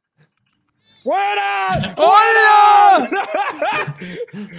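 A young man shouts excitedly into a close microphone.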